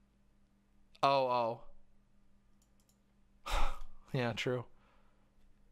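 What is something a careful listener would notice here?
A young woman speaks calmly through a microphone.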